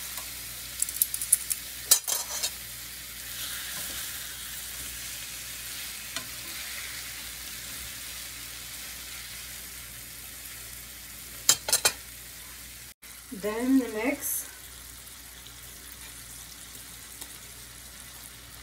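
Fish sizzles gently in a frying pan.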